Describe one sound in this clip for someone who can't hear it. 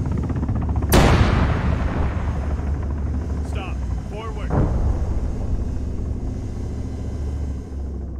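A large explosion booms and rumbles away.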